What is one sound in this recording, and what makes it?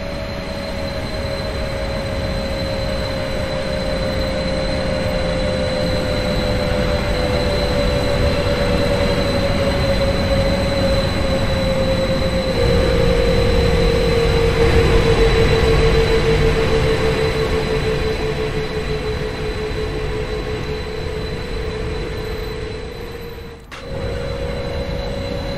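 An electric train hums steadily while standing idle, its tone slowly sinking.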